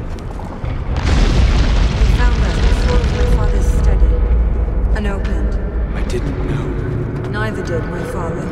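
Stone crashes and rumbles as rubble breaks apart.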